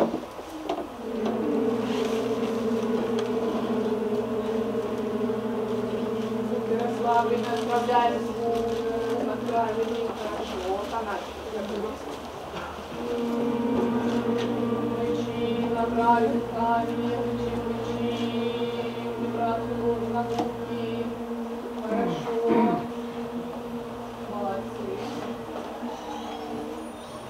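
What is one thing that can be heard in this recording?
Music plays through loudspeakers.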